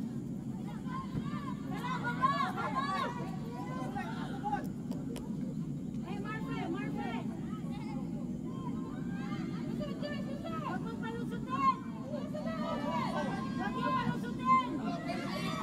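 Young women shout and call to each other across an open outdoor field.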